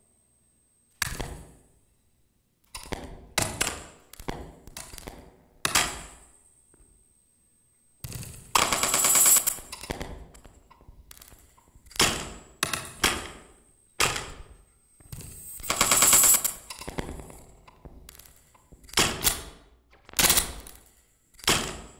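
Cymbals crash and ring out.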